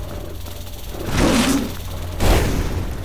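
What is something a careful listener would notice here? A creature roars loudly.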